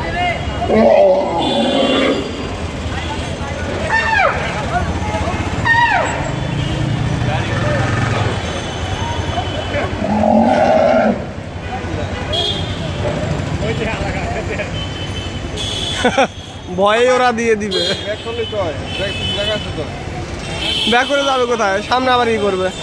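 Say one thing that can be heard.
Vehicle engines idle and rumble in slow street traffic.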